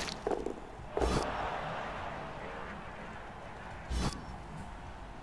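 Players collide with heavy thuds and crunches.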